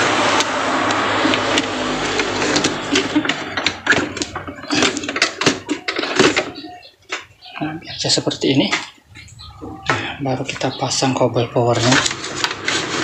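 Plastic parts of a printer click and rattle as they are handled.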